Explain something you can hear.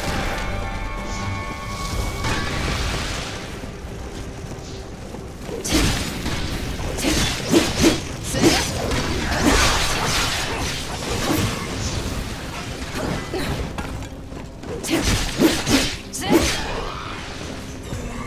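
Fires roar and crackle steadily.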